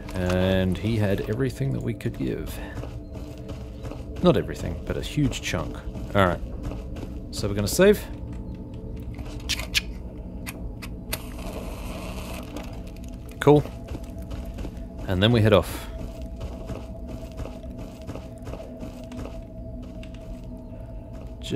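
Footsteps crunch on a hard floor.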